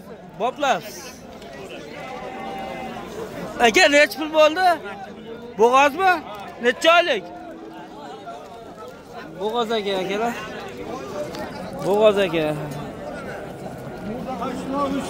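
Men talk and call out loudly nearby, outdoors among a crowd.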